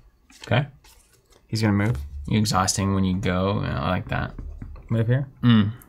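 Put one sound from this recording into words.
Game pieces click on a board.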